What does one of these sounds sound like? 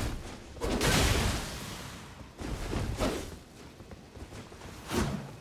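Heavy blows strike and clang in a game fight.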